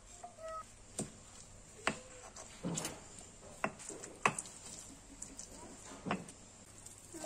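A stone pestle knocks and grinds in a stone mortar.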